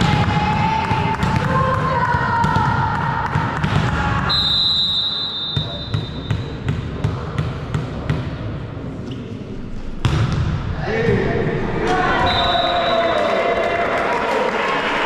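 Young players shout to each other in a large echoing hall.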